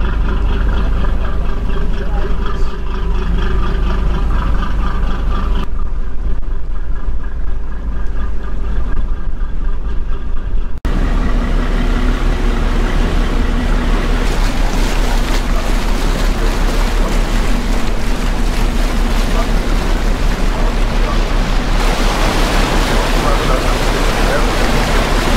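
Water churns and rushes past a moving boat's hull.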